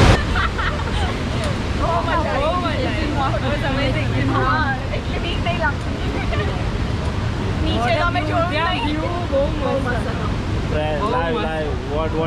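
Young women chat cheerfully close by.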